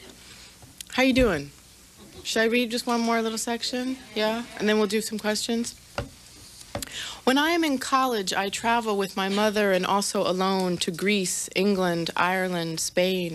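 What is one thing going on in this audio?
A woman speaks through a microphone, reading out calmly.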